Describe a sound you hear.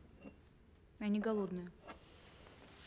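A young woman says a few words quietly.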